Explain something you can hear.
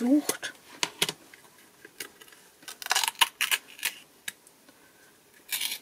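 A plastic lid scrapes and clicks as it is twisted off a jar.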